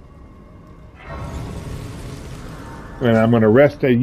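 A soft magical shimmer swells and fades.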